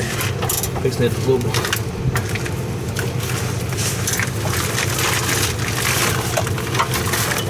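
Heavy metal parts knock and scrape together as a housing is shifted into place.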